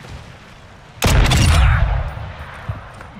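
A shotgun fires with a loud boom.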